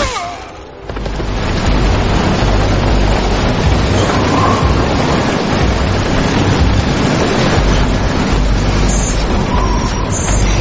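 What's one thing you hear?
A helicopter's rotor thumps and whirs with a low rumble.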